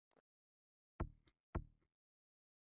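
Hands tap on a wooden table.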